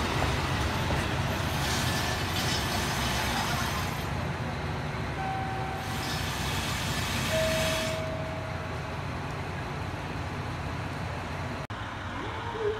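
A train rumbles slowly along the tracks.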